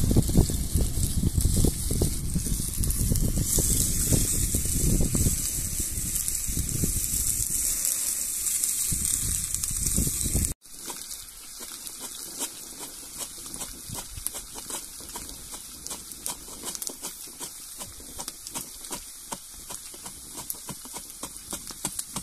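A wood fire crackles.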